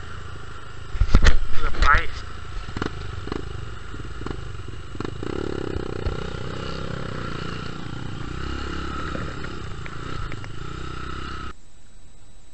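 A dirt bike engine runs and revs close by.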